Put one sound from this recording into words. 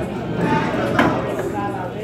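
Pool balls knock together.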